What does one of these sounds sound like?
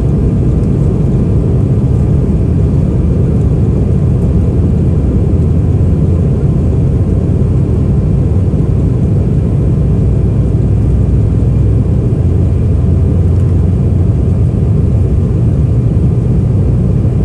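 Jet engines roar steadily, heard from inside an airliner.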